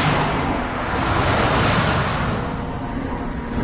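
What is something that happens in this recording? A magical burst of energy roars and crackles.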